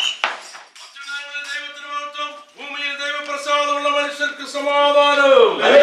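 A group of men and children sing together.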